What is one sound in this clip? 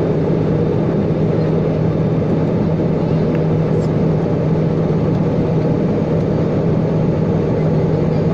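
A vehicle engine drones steadily while driving.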